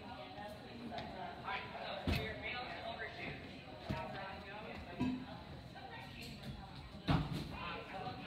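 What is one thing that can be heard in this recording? A gymnast's swings make the bars thump and rattle.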